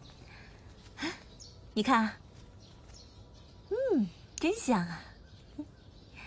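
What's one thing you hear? A young woman speaks cheerfully and hums with delight.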